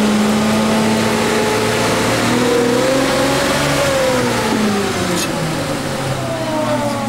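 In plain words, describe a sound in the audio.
A bus engine hums and whines as the bus drives along.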